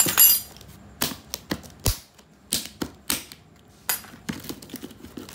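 A blade scratches and scrapes against a plastic surface.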